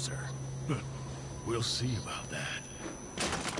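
A gruff man speaks in a low, menacing voice.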